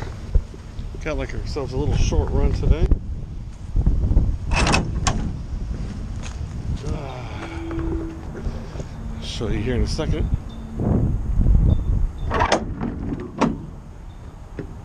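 A man talks casually, close to the microphone.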